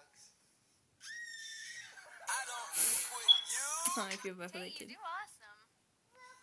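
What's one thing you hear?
A young child squeals and shrieks.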